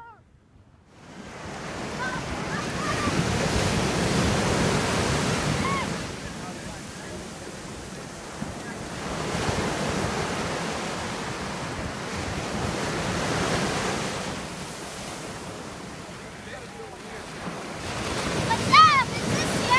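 Waves break and wash onto the shore.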